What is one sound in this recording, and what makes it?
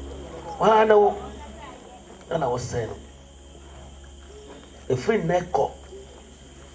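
A man speaks forcefully in short bursts, heard through a loudspeaker outdoors.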